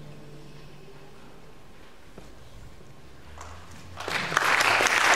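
An oud plays softly.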